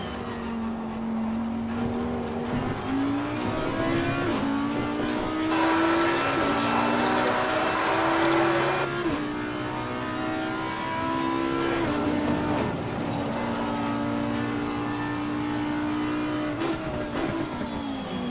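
A V10 racing car engine screams at full throttle, shifting up through the gears.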